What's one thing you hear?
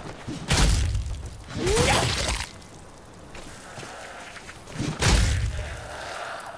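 A heavy gun fires loud booming blasts.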